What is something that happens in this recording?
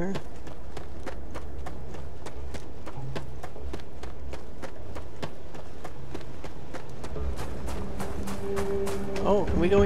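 Footsteps crunch steadily on hard, gritty ground.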